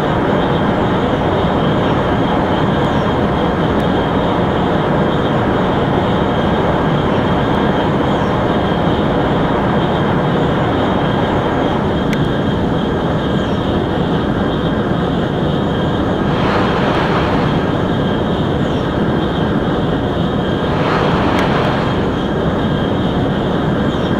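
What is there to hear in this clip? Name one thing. A high-speed train roars steadily along the tracks.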